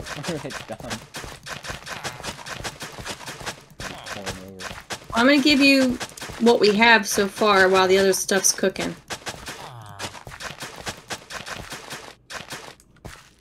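Footsteps crunch softly on dirt.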